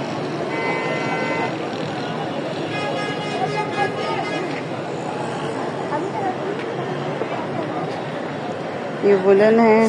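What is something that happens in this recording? Several adults chatter nearby.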